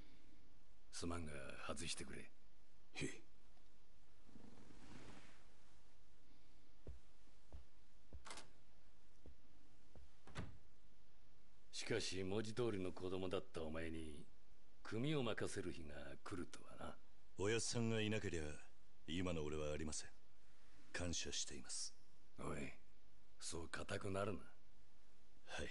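A middle-aged man speaks calmly and in a low voice.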